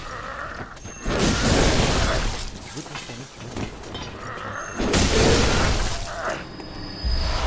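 A blade slashes and strikes a creature with wet, heavy impacts.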